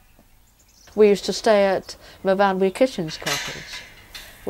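A woman speaks calmly close by, outdoors.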